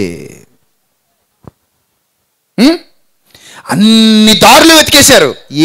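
A man speaks with animation into a microphone, with pauses between phrases.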